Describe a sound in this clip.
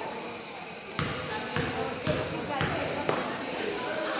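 A basketball bounces several times on a wooden floor.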